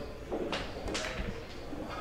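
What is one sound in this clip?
Pool balls knock together with a hard clack.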